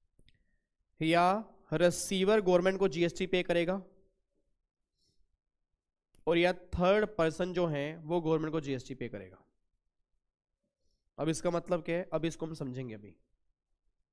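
A man lectures calmly into a microphone, in short bursts with pauses.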